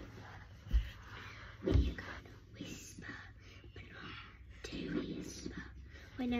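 A second young girl sings along close by.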